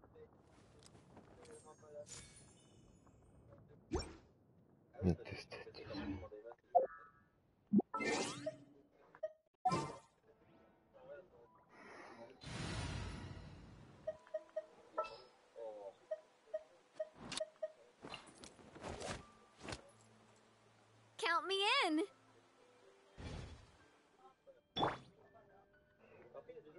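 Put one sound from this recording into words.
Short game menu chimes and clicks sound again and again.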